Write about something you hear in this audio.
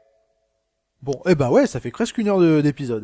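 A long ringing electronic chime plays.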